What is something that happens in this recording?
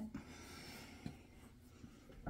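A paintbrush brushes softly across a canvas.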